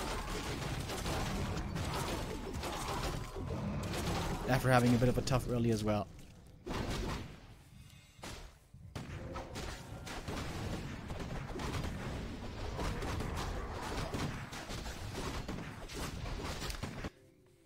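Weapons clash and spells burst in a game battle.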